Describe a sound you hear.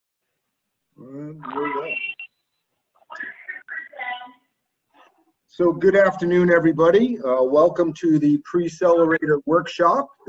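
A man speaks calmly over an online call.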